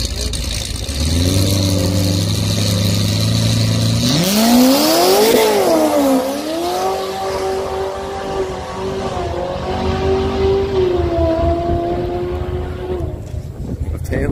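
Car engines roar and rev up as two cars launch down a track.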